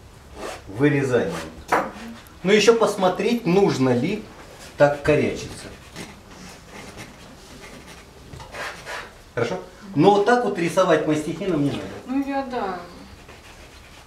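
A middle-aged man explains calmly, close by.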